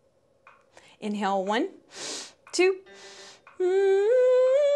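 A young woman speaks into a close microphone with animation.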